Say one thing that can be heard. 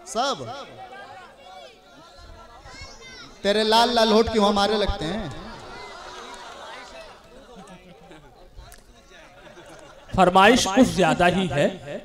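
A young man sings loudly into a microphone through a loudspeaker in an echoing space.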